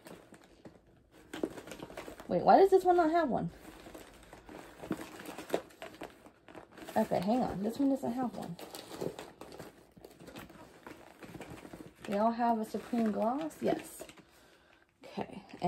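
Paper bags rustle as they are handled.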